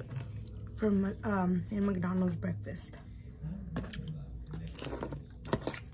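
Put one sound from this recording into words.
A plastic lid rustles and crinkles.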